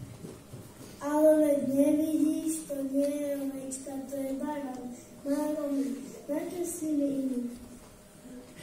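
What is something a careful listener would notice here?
A child speaks loudly through a microphone in a large echoing hall.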